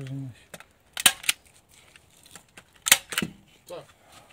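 A hand stapler snaps sharply a few times.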